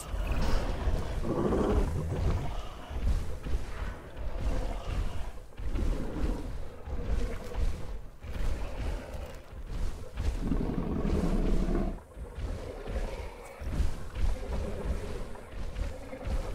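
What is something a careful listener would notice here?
A large animal lets out deep, rumbling growls.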